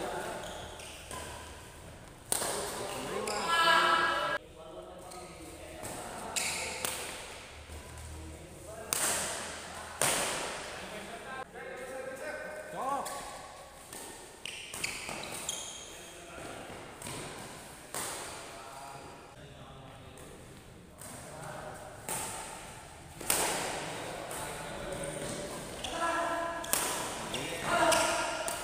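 Badminton rackets smack a shuttlecock back and forth in an echoing hall.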